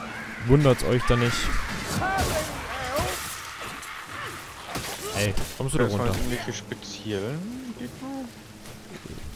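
Creatures shriek and squeal in a fight.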